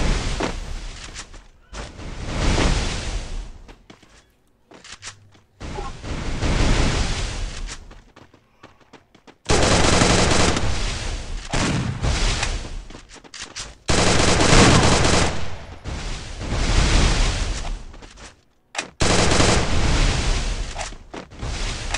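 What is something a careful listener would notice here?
Walls burst up one after another with loud rushing crashes.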